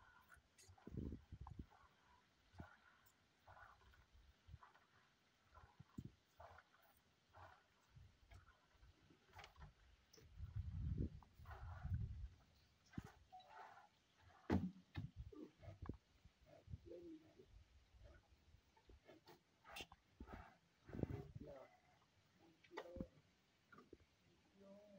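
A young rhino slurps and sucks milk from a bucket.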